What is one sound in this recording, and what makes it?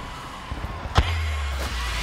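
A sniper rifle fires a single loud shot.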